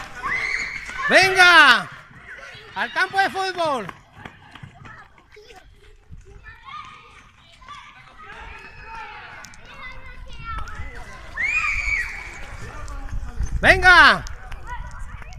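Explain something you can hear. Children shout and scream while playing outdoors at a distance.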